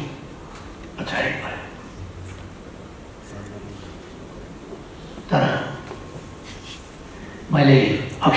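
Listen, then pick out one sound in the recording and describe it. An elderly man speaks slowly and formally into a microphone, heard through a loudspeaker in a large hall.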